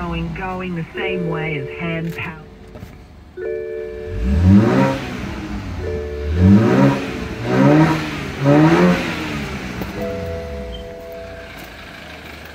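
A car's warning chime beeps in short bursts.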